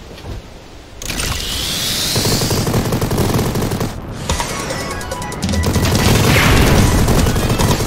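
A video game jet engine roars.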